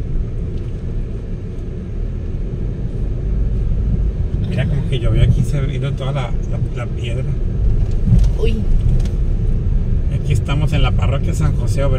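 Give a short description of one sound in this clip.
A car engine hums and tyres rumble on the road from inside a moving car.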